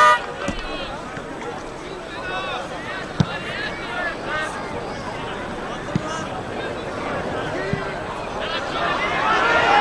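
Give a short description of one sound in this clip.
A crowd of spectators murmurs and calls out outdoors.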